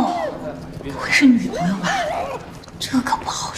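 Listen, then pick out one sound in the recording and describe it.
A young woman speaks with surprise, close by.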